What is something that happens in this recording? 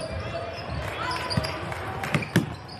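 A basketball thuds as it bounces on the court.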